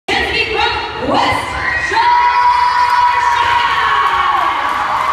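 A large crowd cheers and screams in a big echoing hall.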